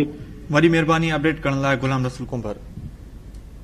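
A man speaks over a phone line.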